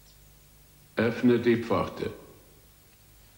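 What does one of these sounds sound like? An elderly man speaks in a low voice, close by.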